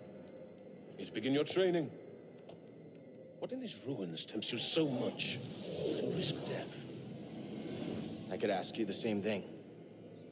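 A young man speaks in a questioning voice.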